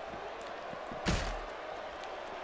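A body slams heavily onto the floor.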